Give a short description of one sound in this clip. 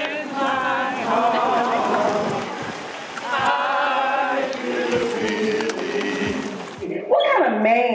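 A marching band plays brass instruments outdoors.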